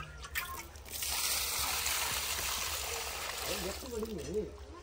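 Water splashes as it is poured from a clay pot onto soil.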